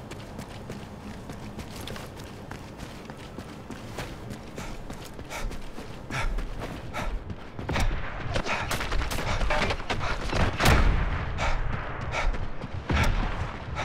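Footsteps patter quickly on a hard floor.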